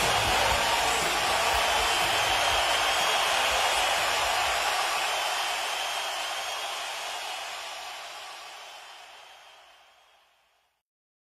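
A large crowd cheers and screams loudly, then fades away.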